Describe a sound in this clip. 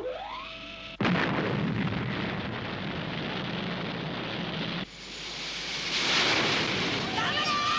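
Steam bursts out with a loud rushing hiss.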